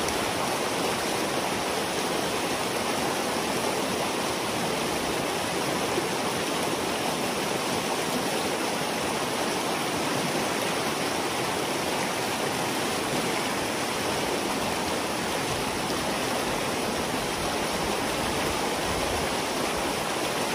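Water rushes and gurgles steadily through a gap in a dam.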